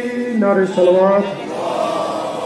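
A young man sings through a microphone over loudspeakers.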